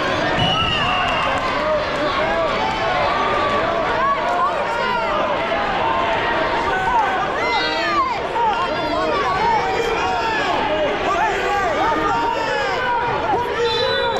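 A large crowd chatters, shouts and cheers in a big echoing hall.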